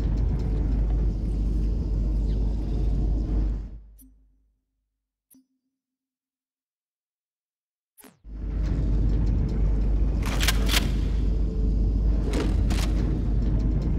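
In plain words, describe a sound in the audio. A low, steady droning hum stops for a few seconds and then comes back.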